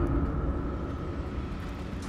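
A magic spell crackles with a bright shimmer.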